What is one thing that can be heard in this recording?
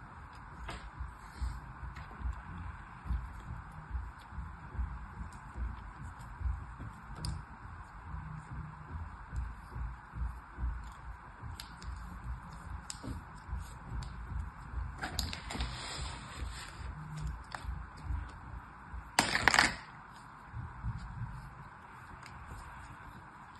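Hands squeeze and press soft sand with quiet, crumbly thumps.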